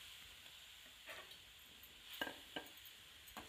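A metal spoon scrapes and clinks against a metal bowl.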